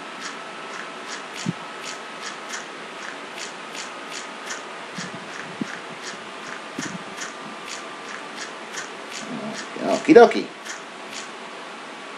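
Footsteps tap quickly and evenly on hard blocks.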